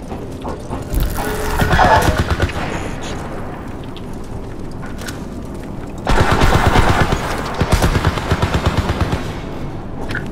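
Gunfire rattles in rapid bursts close by.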